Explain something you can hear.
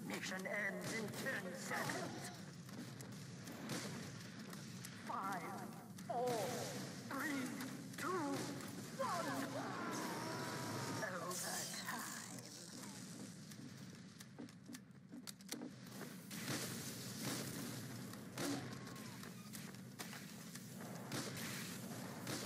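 Rockets whoosh as they are fired.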